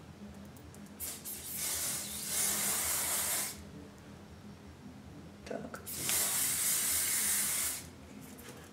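A spray bottle hisses in short bursts close by.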